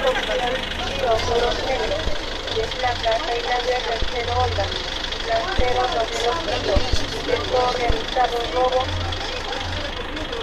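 Men talk loudly and excitedly nearby, outdoors.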